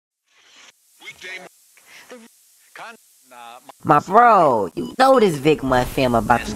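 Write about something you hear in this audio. A young man speaks in an animated cartoon voice, close to the microphone.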